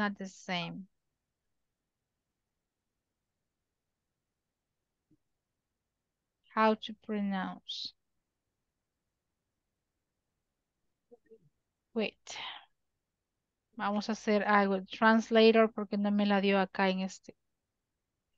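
A young woman speaks calmly over an online call, in short bursts with pauses.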